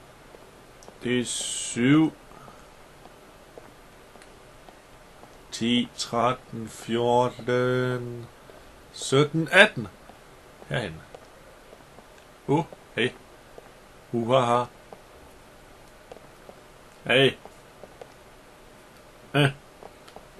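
A young man talks with animation into a microphone, in short bursts.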